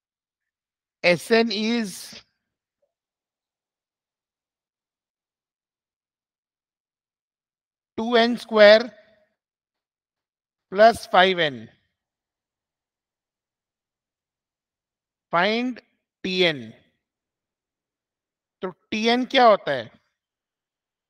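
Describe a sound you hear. A man speaks calmly in short phrases through a microphone, as if explaining.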